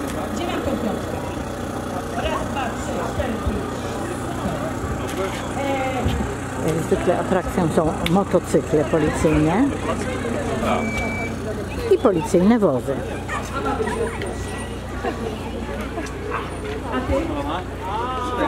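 Men talk calmly nearby, outdoors.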